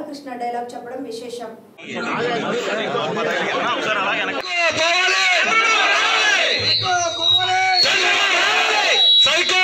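A crowd of men and women chant slogans loudly outdoors.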